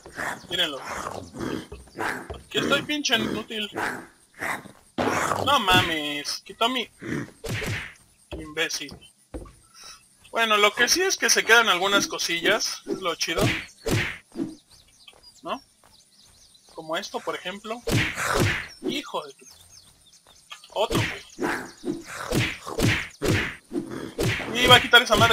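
An axe strikes flesh with heavy, wet thuds, again and again.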